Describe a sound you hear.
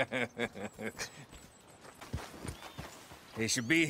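A horse's hooves clop slowly on rocky ground.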